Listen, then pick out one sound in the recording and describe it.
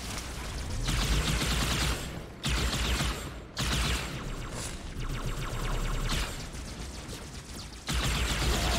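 A plasma weapon fires in rapid, crackling bursts.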